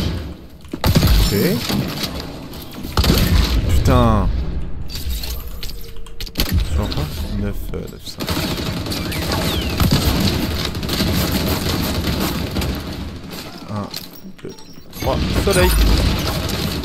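Loud sniper rifle shots crack now and then, each followed by a short echo.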